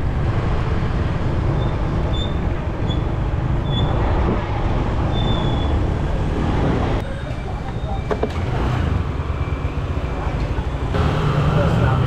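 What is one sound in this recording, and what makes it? Other motorbikes and cars pass in traffic nearby.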